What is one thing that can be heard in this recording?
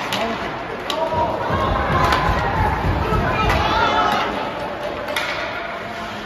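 Spectators murmur and call out in a large echoing arena.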